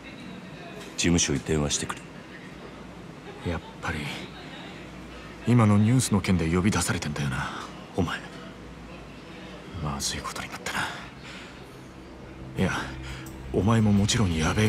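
A man speaks in a low, serious voice nearby.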